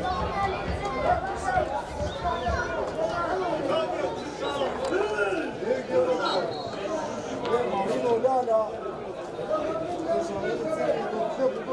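A crowd of spectators chatters and calls out in the distance outdoors.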